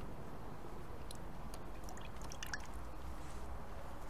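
Liquid pours into a bucket.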